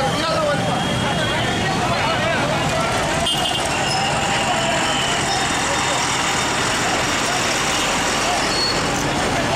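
Traffic rumbles past on a busy road.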